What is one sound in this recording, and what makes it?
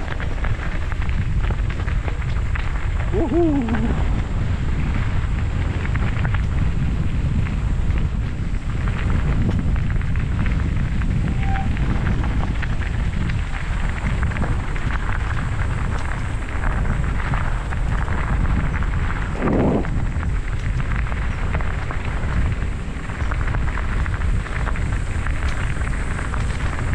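Tyres crunch on a gravel track.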